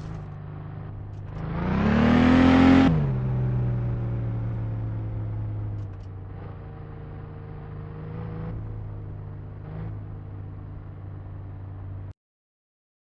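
A car engine hums, revs up sharply and then settles to an idle.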